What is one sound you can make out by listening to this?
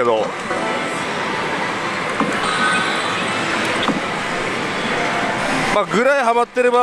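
A slot machine plays loud electronic music and jingles.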